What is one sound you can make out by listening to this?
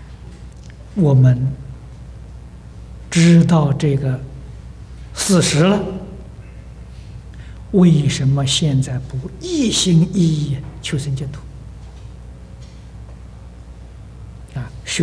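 An elderly man speaks slowly and expressively into a microphone, with pauses between phrases.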